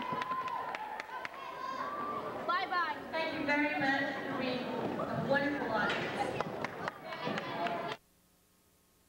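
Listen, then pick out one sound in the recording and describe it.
A woman sings through a microphone in a large hall.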